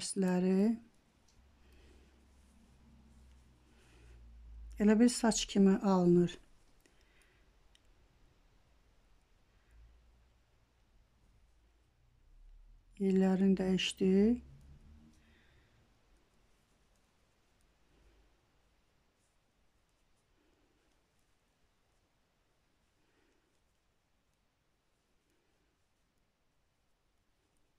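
Knitting needles click softly together.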